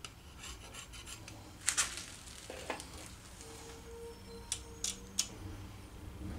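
A wrench clicks against metal parts.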